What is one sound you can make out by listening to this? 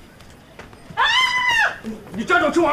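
A young woman cries out in surprise.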